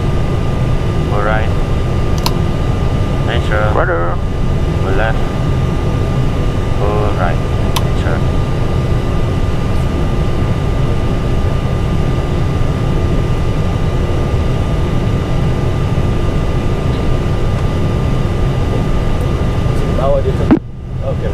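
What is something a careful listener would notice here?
A man speaks briefly through a headset radio.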